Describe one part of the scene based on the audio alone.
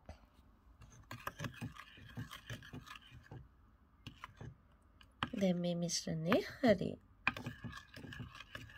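A spoon scrapes and stirs thick batter in a bowl.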